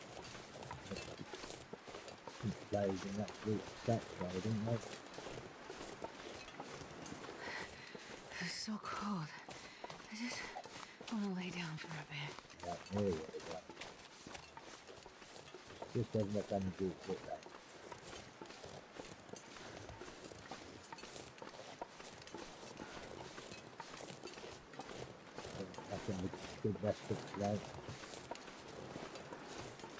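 Footsteps crunch in snow.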